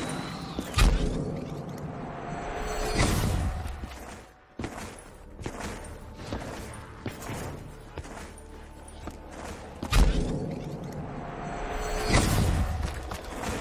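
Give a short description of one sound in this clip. A deep rumbling whoosh swells and bursts with a loud boom.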